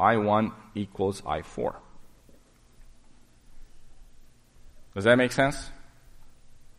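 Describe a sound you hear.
A man lectures through a microphone in a hall, speaking in short calm phrases.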